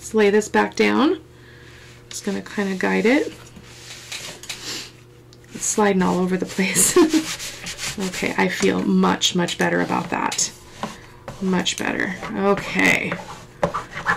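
Hands smooth and rub a cloth flat on a table.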